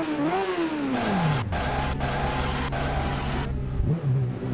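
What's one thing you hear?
A motorcycle crashes and scrapes along the road.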